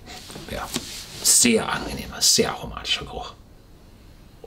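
An older man sips and slurps a drink.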